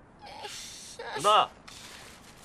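A young woman speaks up close with a whine.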